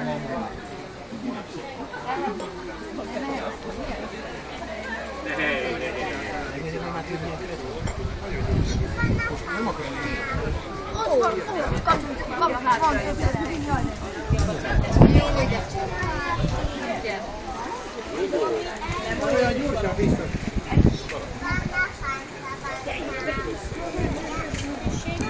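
Men and children talk nearby in a lively group.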